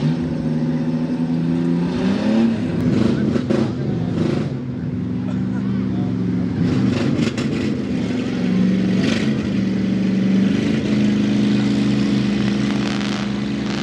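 A jeep engine idles nearby with a deep rumble.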